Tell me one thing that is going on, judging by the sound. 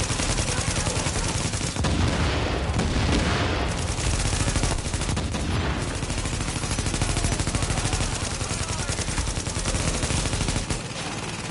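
An automatic rifle fires bursts of gunfire in a video game.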